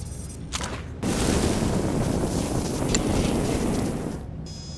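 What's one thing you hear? A blaster fires zapping shots.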